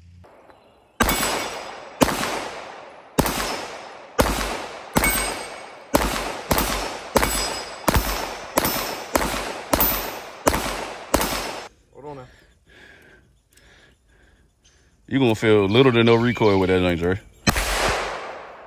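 Pistol shots crack in quick succession outdoors, echoing off the trees.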